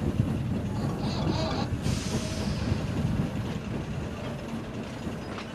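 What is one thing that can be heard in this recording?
A steam engine rumbles along the tracks.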